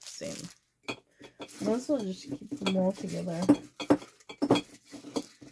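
A glass jar clinks as it is handled.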